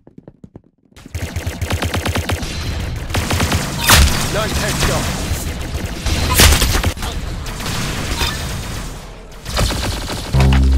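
A toy laser gun fires rapid zapping shots.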